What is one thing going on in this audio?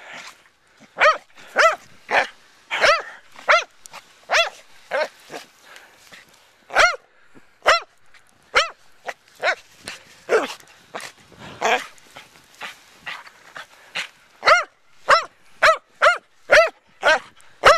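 A dog barks in short, high yelps over and over.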